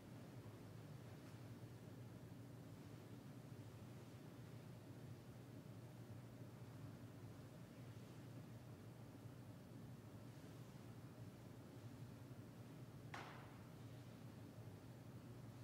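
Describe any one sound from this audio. A man speaks quietly at a distance in a large echoing room.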